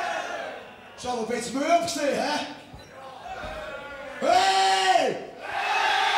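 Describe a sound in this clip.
A young man sings loudly into a microphone with a high, strained voice.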